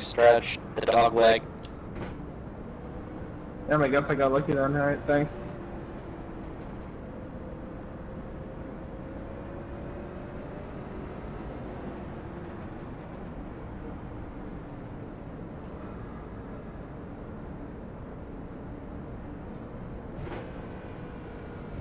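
A race car engine drones steadily.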